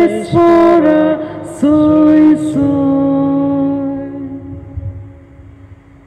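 A man sings a slow chant through a microphone in a large echoing hall.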